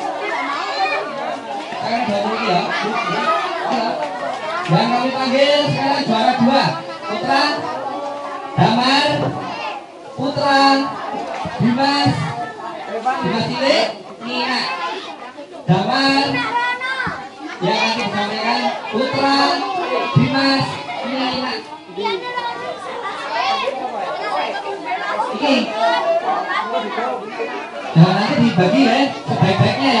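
Many children chatter and shout loudly nearby.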